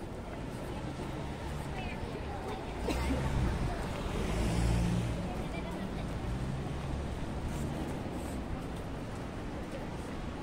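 Footsteps tap on pavement as people walk by.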